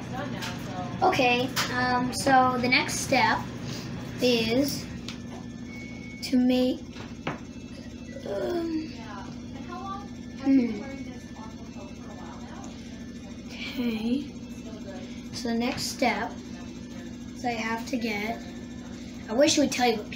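A young child speaks close by in a high voice.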